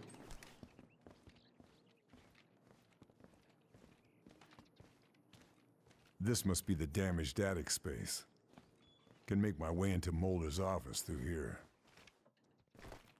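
Soft footsteps creak across wooden floorboards.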